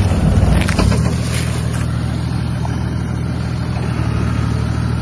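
Tyres crunch over loose dirt and rocks.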